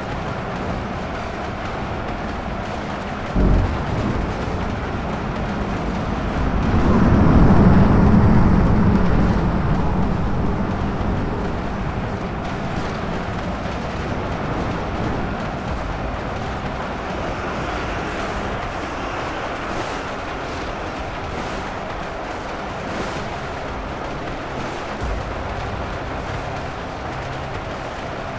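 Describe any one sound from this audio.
Blasters fire in rapid, constant volleys.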